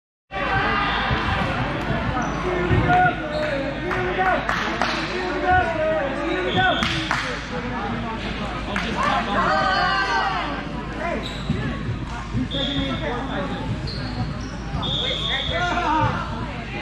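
Many voices of young men chatter and shout, echoing around a large hall.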